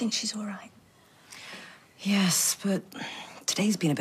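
Another middle-aged woman answers in a low voice nearby.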